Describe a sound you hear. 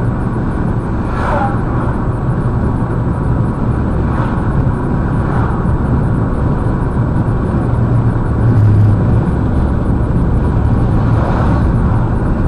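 An oncoming truck rushes past with a brief whoosh.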